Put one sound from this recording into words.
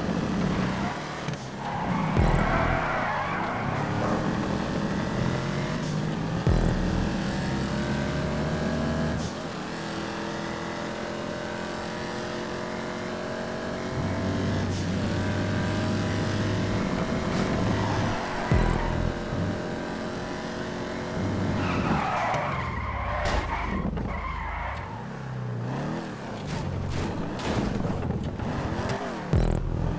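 A car engine roars steadily, rising and falling in pitch as it revs through the gears.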